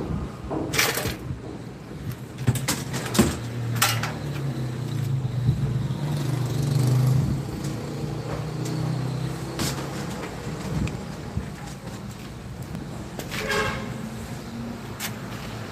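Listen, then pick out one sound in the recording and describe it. Copper tubing clinks and rattles as a man handles it.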